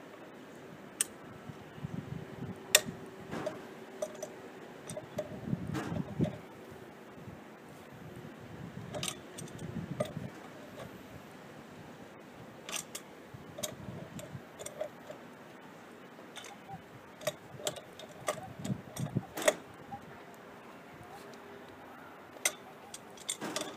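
A metal wrench clicks and clanks against a brass pipe fitting.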